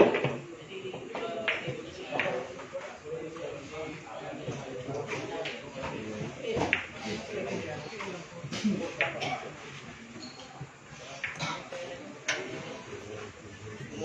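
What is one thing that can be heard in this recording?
Several young men chat quietly nearby.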